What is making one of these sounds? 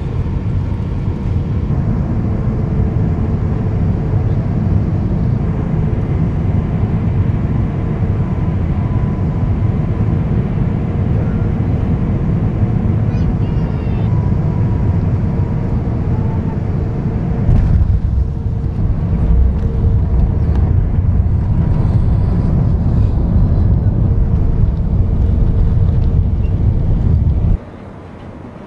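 Jet engines roar steadily as an airliner descends.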